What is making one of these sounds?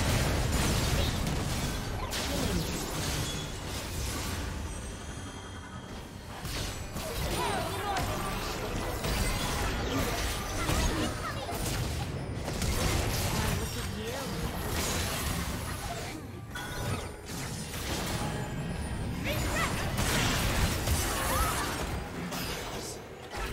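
Spell effects whoosh and crackle in a fast game battle.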